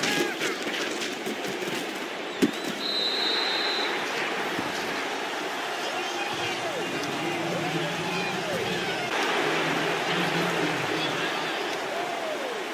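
A large stadium crowd cheers and roars steadily.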